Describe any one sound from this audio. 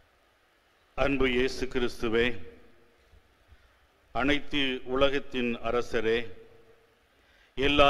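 An elderly man chants through a microphone.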